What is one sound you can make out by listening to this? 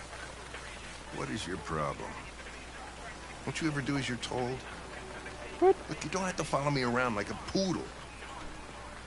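An older man speaks in a low, gruff voice.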